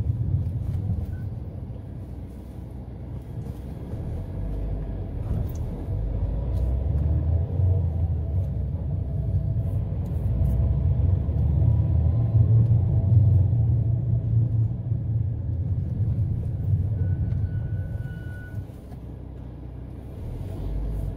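A car engine hums low and steady as the car drives along a road.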